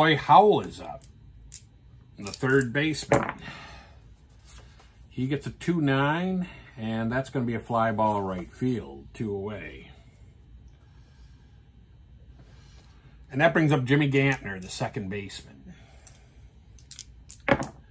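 Dice rattle and clatter into a tray.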